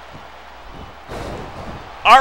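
A body slams hard onto a wrestling mat.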